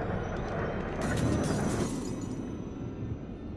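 A bright, shimmering chime swells and fades.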